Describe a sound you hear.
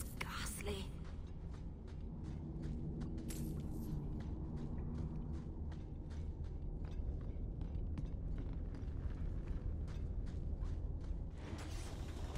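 Footsteps crunch steadily on stone.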